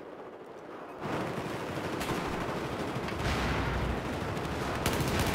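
Gunshots and a blast ring out loudly in an echoing corridor.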